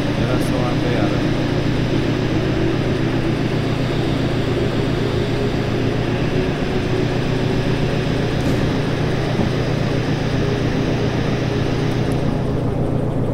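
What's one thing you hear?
Rain patters on a cab roof and windows.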